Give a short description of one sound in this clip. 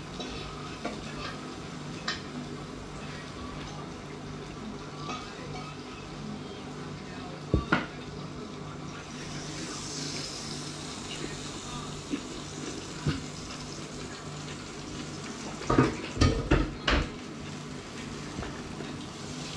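Cutlery clinks and knocks against a board.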